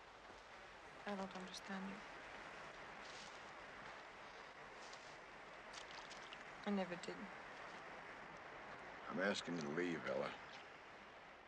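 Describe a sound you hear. A woman speaks quietly.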